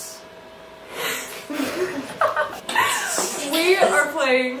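Young women and a young man laugh together.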